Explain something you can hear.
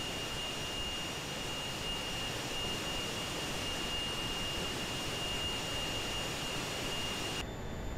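A jet engine roars steadily with a high whine.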